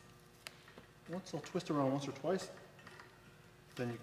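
Pliers click and scrape against metal.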